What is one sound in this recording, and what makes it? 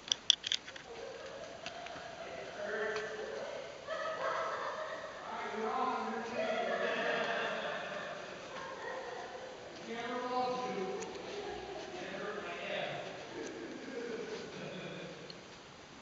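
Several distant men talk, their voices echoing.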